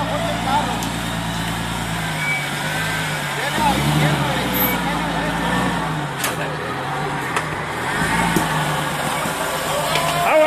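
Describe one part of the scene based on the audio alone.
An off-road SUV's engine revs under load as it climbs over tree roots.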